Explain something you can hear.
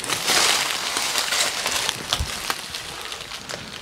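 Footsteps scuff on gravel and rock.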